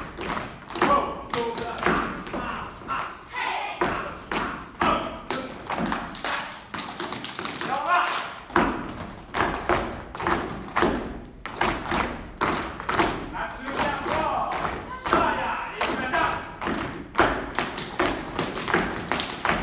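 A man calls out instructions loudly in a large echoing hall.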